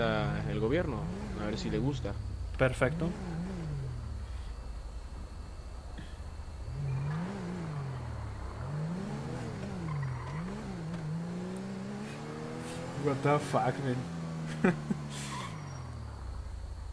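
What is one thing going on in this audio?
A car engine hums as the car drives along.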